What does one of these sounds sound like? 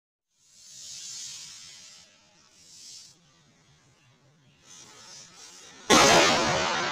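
A fuse hisses and sputters.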